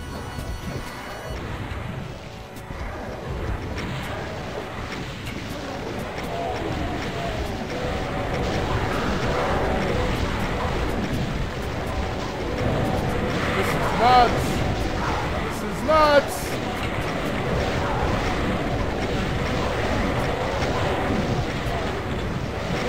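A video game gun fires rapidly.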